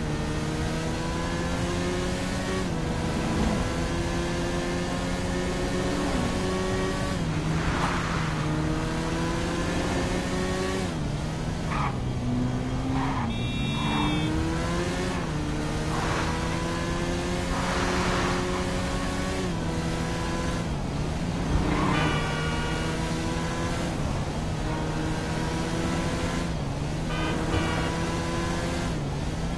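A motorcycle engine accelerates, its note climbing and dropping with each gear change.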